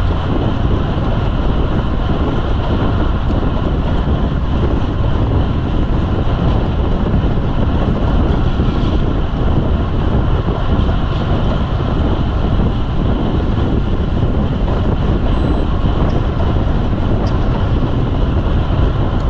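Bicycle tyres hum along a paved road.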